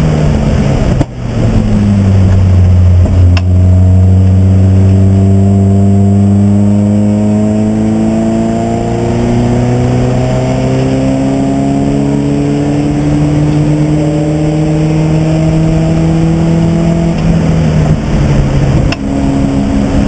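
Gear shifts briefly cut the race car engine with sharp clunks.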